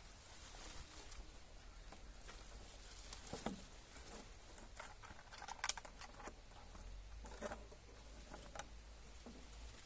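A plastic bottle crackles as it is handled.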